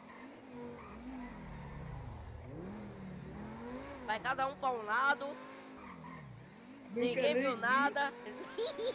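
A sports car engine revs and drones as the car speeds along.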